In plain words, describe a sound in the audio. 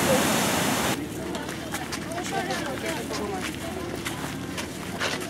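A crowd of adults chatters nearby outdoors.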